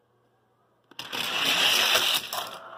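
Toy cars roll fast down a plastic track.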